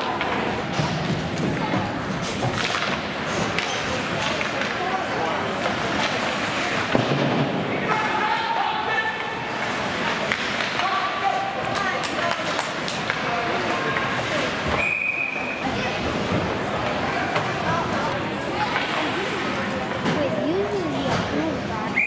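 Spectators shout and cheer in a large echoing rink.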